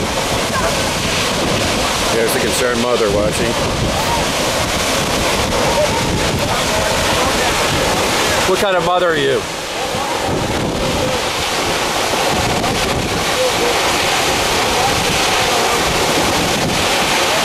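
A waterfall roars and crashes steadily close by.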